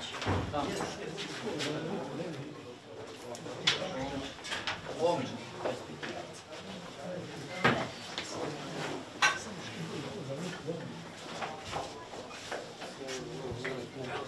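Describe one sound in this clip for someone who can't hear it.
Footsteps shuffle on a tiled floor.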